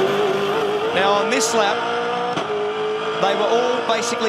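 A racing car engine shifts gears, its pitch dropping and climbing again.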